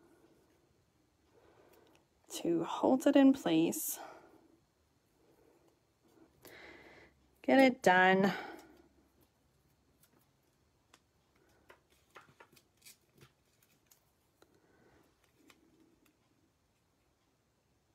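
Paper rustles and crinkles softly between fingers.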